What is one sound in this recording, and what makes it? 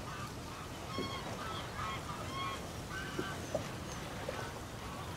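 Birds call overhead as they fly past.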